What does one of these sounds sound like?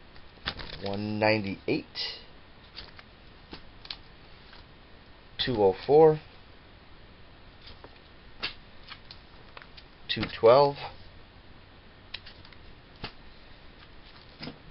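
Comic books in plastic sleeves rustle and tap as they are handled.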